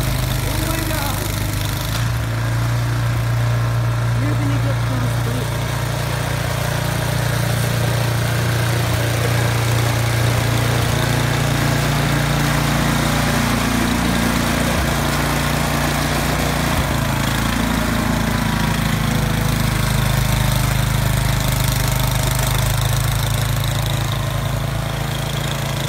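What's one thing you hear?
A snowblower throws snow with a hissing whoosh.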